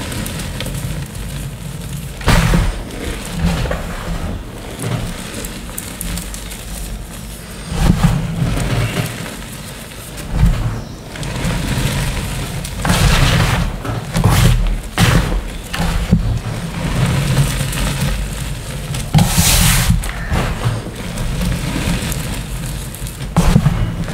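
Water sloshes and splashes as hands scoop and pour it in a tub.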